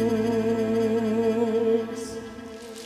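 A man sings with feeling into a microphone, loud and close, in a large hall.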